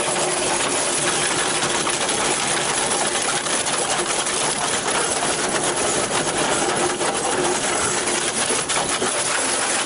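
An excavator engine rumbles nearby.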